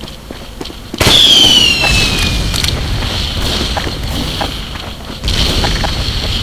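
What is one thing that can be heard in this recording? A heavy machine gun spins up and fires in a rapid, continuous burst.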